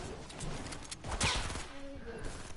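A gun fires in a short burst.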